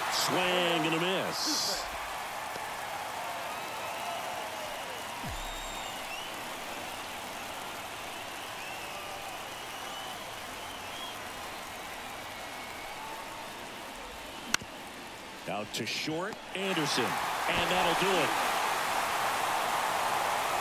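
A large crowd murmurs and cheers steadily in an open stadium.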